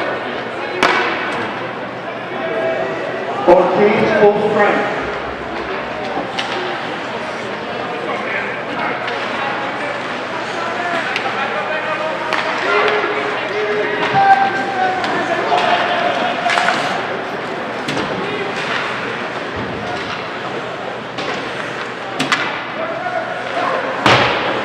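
Hockey sticks and pucks clack on the ice.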